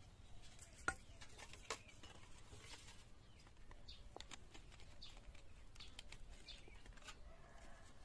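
Metal scrapes and rasps against bamboo in short strokes.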